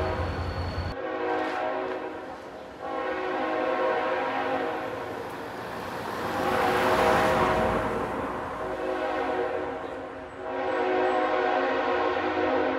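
A railway crossing bell rings steadily.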